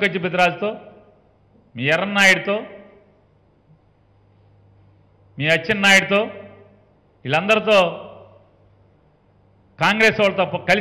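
A middle-aged man speaks emphatically into a microphone in short bursts with pauses.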